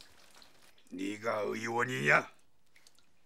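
A middle-aged man speaks pleadingly in a shaky voice, close by.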